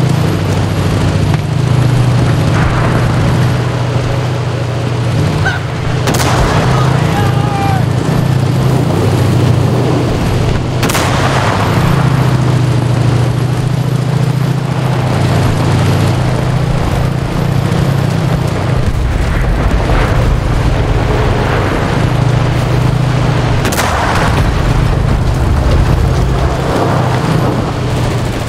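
A tank engine rumbles loudly and steadily nearby.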